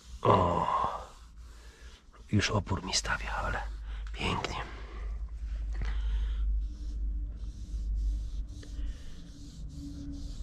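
Hands tap and rub against plastic car trim.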